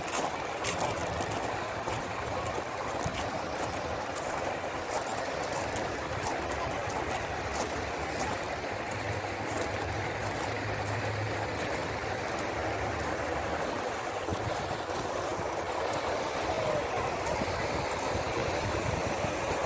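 Fountains splash and gush steadily on open water.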